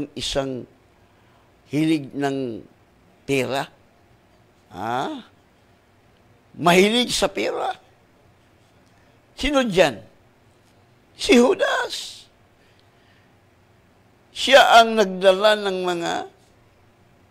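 A middle-aged man speaks into a microphone in short, emphatic phrases with pauses between them.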